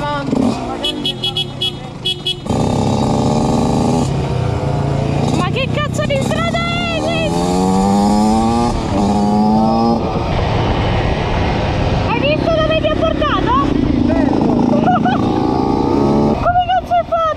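A motorcycle engine revs and roars, rising and falling in pitch.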